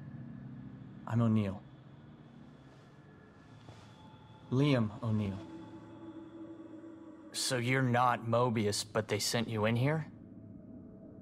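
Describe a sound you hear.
A bald middle-aged man speaks tensely.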